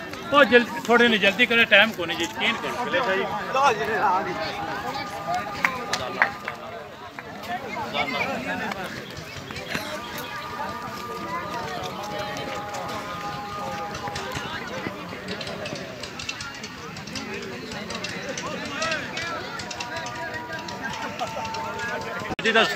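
A crowd of young men shouts and calls out outdoors.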